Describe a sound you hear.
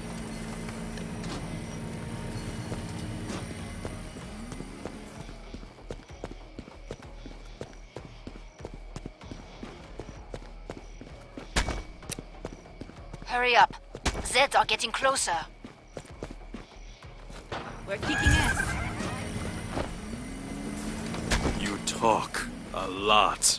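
Footsteps fall steadily on soft ground.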